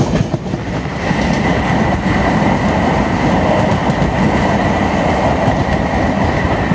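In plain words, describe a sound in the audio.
Wind rushes loudly past an open train window.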